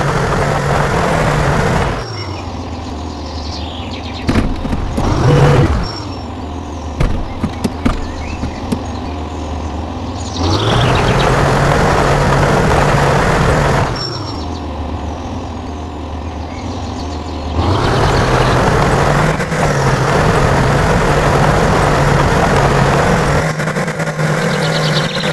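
A heavy truck engine drones, swelling louder and dropping back at times.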